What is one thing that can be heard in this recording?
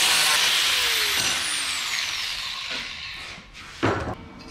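An angle grinder whirs and winds down.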